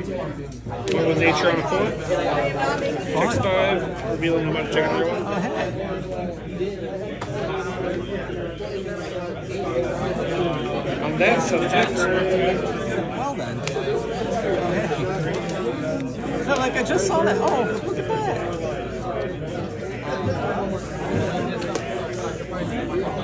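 Playing cards slide and tap softly on a mat.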